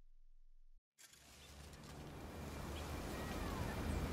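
Wind rustles through tree leaves, growing louder.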